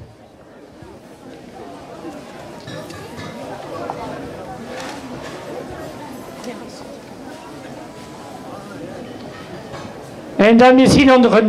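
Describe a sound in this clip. A crowd murmurs softly outdoors.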